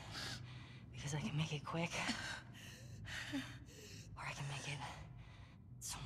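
A young woman speaks tensely and threateningly, close by.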